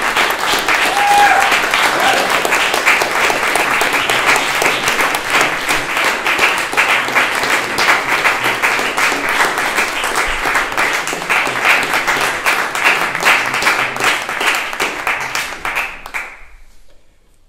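An audience applauds loudly in an echoing hall, then the clapping fades out.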